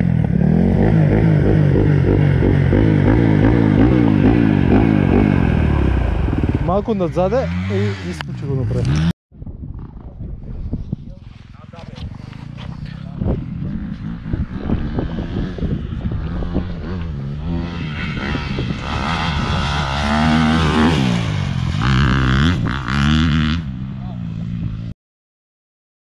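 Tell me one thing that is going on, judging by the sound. A dirt bike engine revs and sputters close by.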